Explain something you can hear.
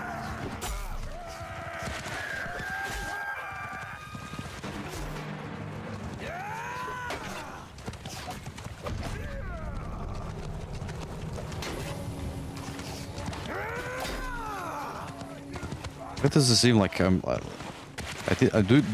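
Horses gallop and splash through shallow water.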